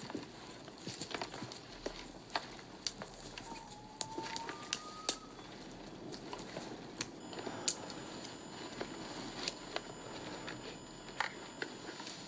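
Dry twigs snap underfoot.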